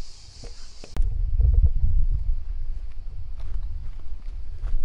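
Wind buffets and rumbles outdoors.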